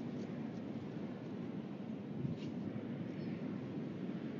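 A large bird shifts and rustles on its nest.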